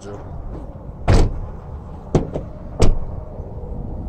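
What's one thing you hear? A van door handle clicks and thunks as it is pulled.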